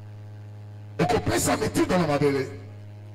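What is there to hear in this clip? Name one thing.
An older man speaks loudly with emphasis through a microphone in an echoing room.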